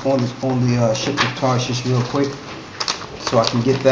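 Paper rustles as a sheet is handled.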